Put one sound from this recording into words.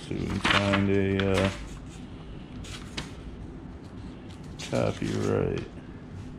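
Paper pages rustle as a book's pages are turned by hand.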